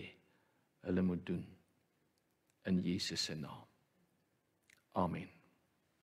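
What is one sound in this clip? A middle-aged man speaks calmly and slowly into a microphone, with pauses between phrases.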